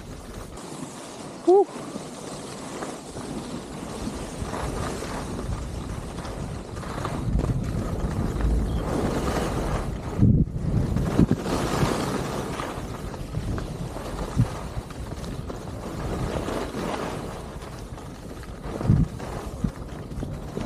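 Skis hiss and scrape over packed snow.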